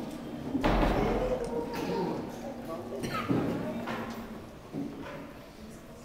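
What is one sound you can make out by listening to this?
A young man speaks calmly into a microphone in an echoing room.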